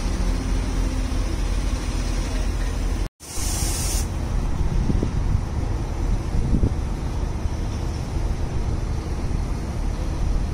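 A train engine idles with a low steady rumble.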